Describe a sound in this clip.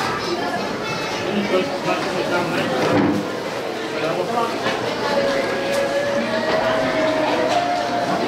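Several men and women talk casually nearby.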